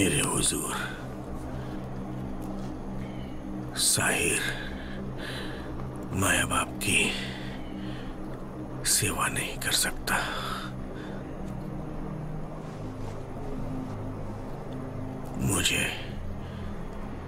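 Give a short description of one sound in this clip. A man speaks in a low, strained voice close by.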